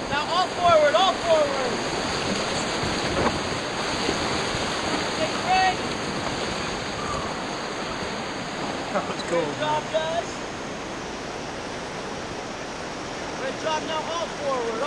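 Young people shout and whoop excitedly close by.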